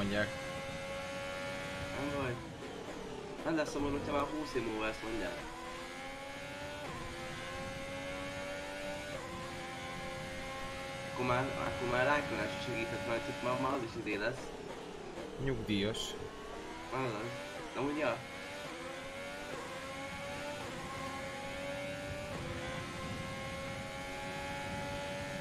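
A racing car engine roars steadily, rising and falling in pitch as it shifts gears.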